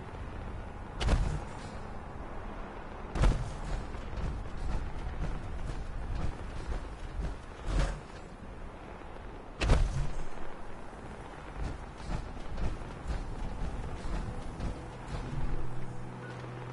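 Heavy metal footsteps thud and clank on hard ground.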